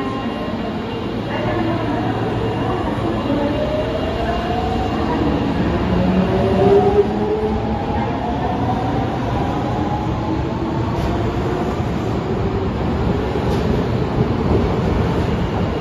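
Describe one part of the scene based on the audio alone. An underground train pulls out and rumbles past, rising in pitch as it speeds up.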